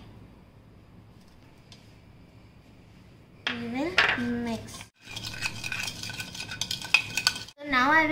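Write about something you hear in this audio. A spoon scrapes and clinks against a bowl while stirring.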